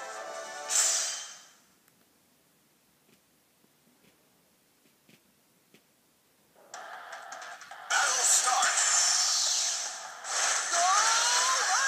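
Video game music plays.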